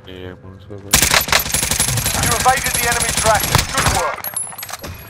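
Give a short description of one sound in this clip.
A rifle fires in a rapid, sustained burst.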